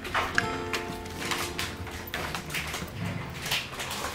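A small dog's claws click on a hard floor.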